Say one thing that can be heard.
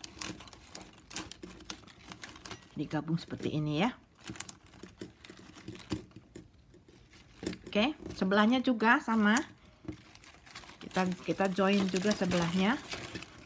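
Plastic strapping strips rustle and click as hands weave them.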